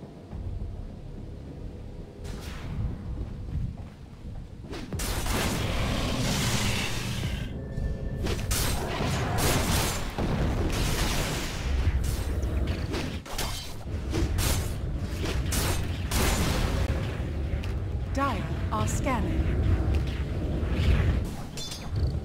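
Magic blasts and sword blows clash in a busy fight.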